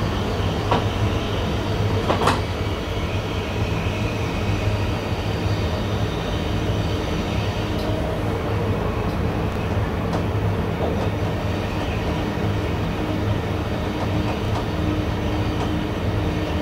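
Wheels clack over rail joints now and then.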